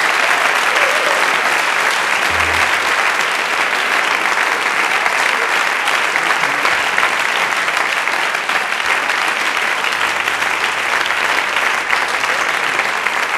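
A large audience claps and cheers loudly in an echoing hall.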